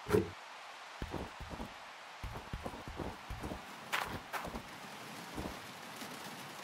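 Plastic buckets thud as they are set down one after another.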